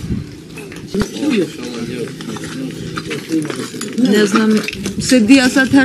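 A middle-aged woman speaks close by in a shaken, upset voice.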